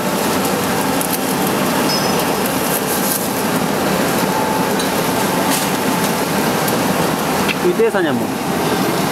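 A machine whirs and rattles steadily as rollers spin.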